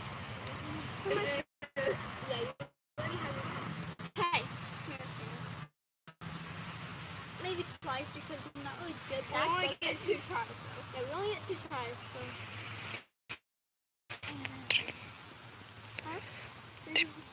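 Young women talk and laugh with animation close by, outdoors.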